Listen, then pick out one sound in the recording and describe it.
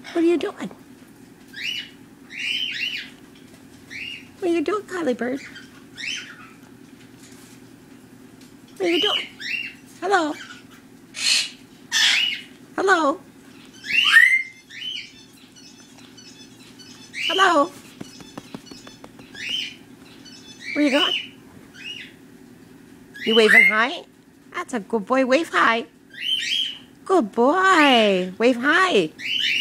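A parrot squawks and chatters close by in short bursts.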